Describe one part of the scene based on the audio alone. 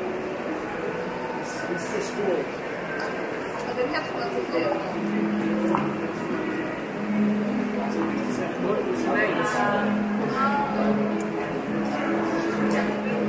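A steady hum of a crowd echoes in a large indoor hall.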